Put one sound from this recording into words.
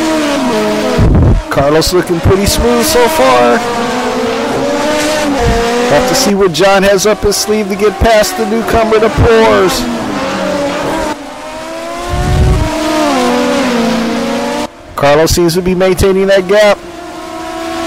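Car tyres squeal around tight corners.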